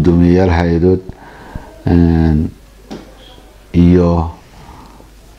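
A man speaks calmly and closely into a microphone, in short phrases.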